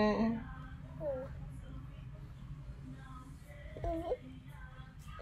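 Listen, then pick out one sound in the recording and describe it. A toddler makes short babbling sounds close to the microphone.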